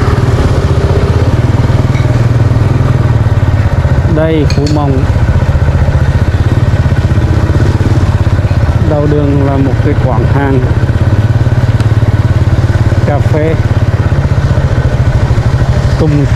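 Other motorbikes ride past.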